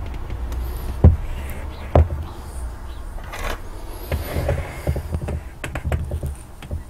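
Wooden boards knock and clatter as they are stacked.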